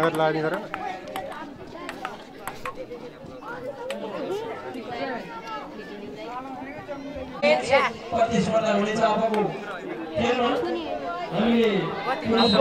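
A crowd of young people chatters and cheers outdoors.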